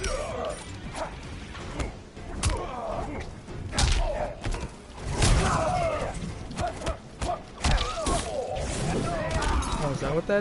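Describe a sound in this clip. Punches and kicks land with heavy, sharp thuds.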